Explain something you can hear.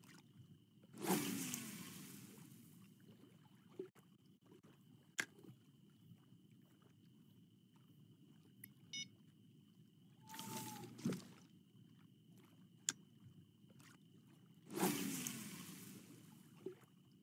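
A fishing rod swishes through the air as a line is cast.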